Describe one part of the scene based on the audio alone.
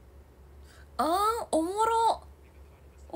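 A young woman speaks loudly and brightly close by.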